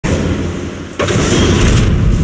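A heavy metal robot lands with a loud booming thud.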